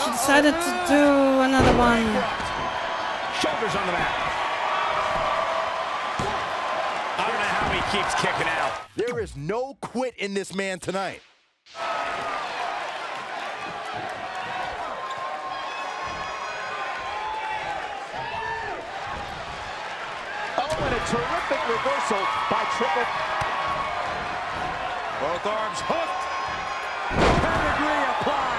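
A large crowd cheers and roars in a big echoing arena.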